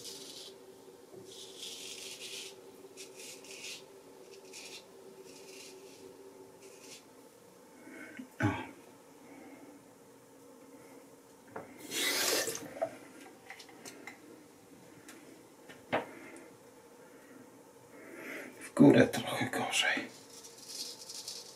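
A razor scrapes across skin.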